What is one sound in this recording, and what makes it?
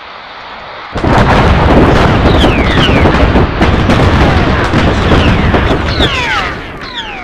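Explosions boom and rumble in rapid succession.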